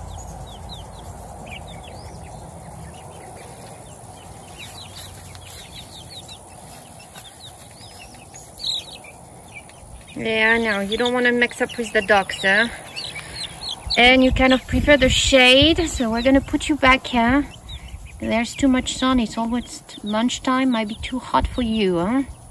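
Chicks peep softly and steadily.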